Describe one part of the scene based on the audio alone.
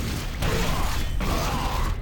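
A rocket explodes with a boom in a video game.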